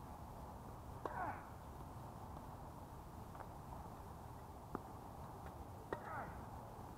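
Tennis balls are struck with rackets outdoors.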